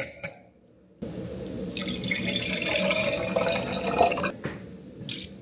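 Juice pours into a glass.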